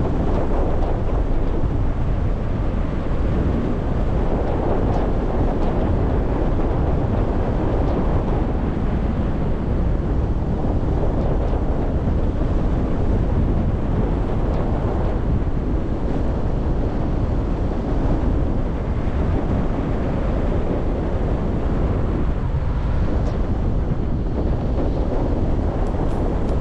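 Strong wind rushes and buffets loudly past the microphone throughout.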